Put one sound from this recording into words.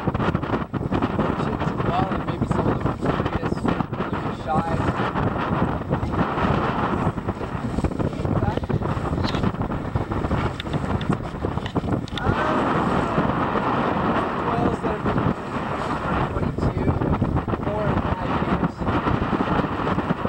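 Choppy waves slap and splash on the water.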